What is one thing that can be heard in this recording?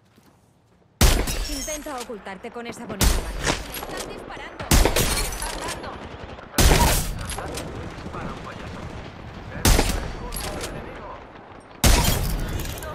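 A rifle fires loud single shots, each followed by a ringing echo.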